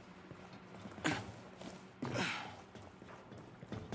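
Boots thud on metal steps.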